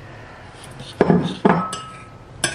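A metal spoon knocks and scrapes against a metal pot.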